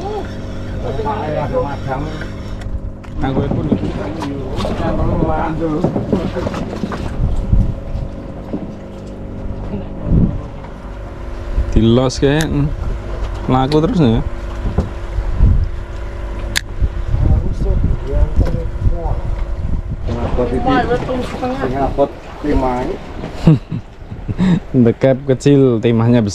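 A boat engine hums steadily close by.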